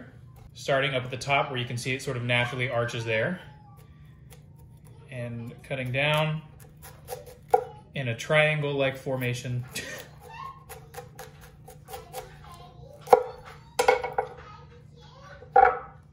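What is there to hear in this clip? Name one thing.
A knife cuts through cauliflower with crisp crunching and snapping.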